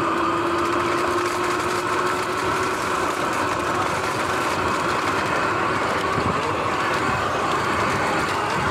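Tyres roll and rustle over grass and dry leaves.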